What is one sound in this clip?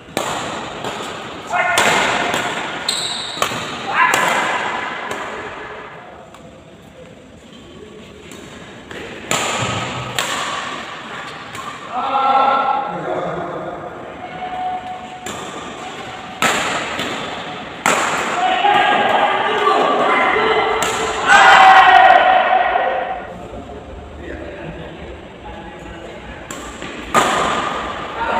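Men call out and talk during play.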